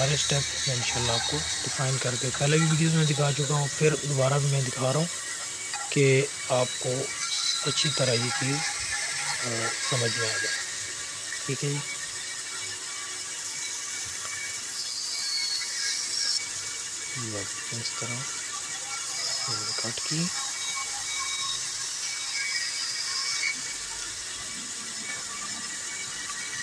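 A band saw whirs as it cuts through wood.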